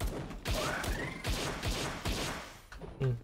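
Gunshots fire in quick bursts.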